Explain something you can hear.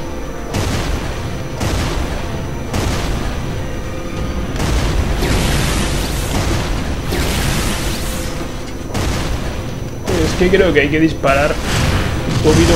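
A heavy energy weapon fires repeatedly, each shot booming and fading away.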